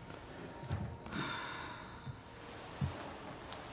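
A man sighs heavily.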